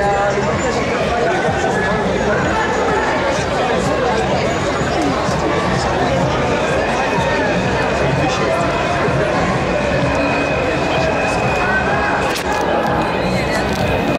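A large crowd of marching people chatters and calls out all around, close by.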